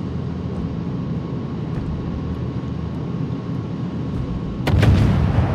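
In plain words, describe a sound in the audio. A ship's engines rumble low and steady.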